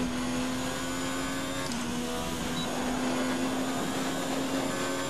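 A racing car engine screams at high revs, steady and loud.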